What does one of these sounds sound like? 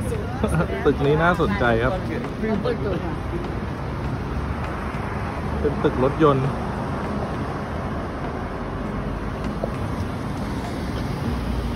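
Traffic hums along a city street outdoors.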